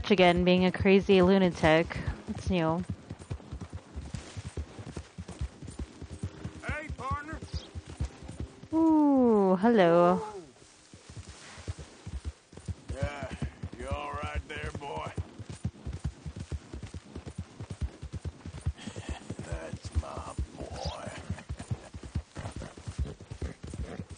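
A horse gallops quickly, its hooves thudding on a dirt trail.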